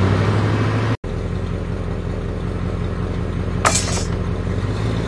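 A van engine idles with a low steady hum.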